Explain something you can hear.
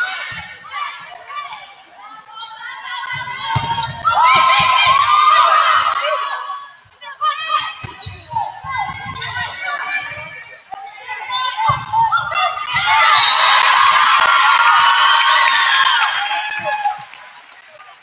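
Young women players call out to each other during the rally.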